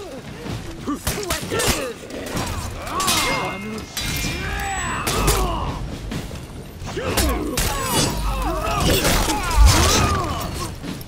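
Swords clash and ring.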